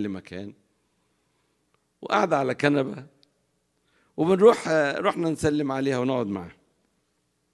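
A middle-aged man speaks with animation through a microphone, in bursts with pauses.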